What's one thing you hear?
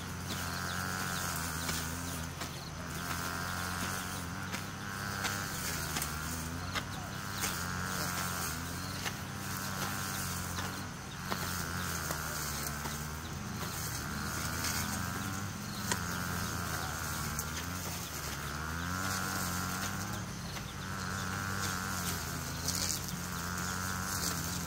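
A hoe chops into grassy soil with dull thuds.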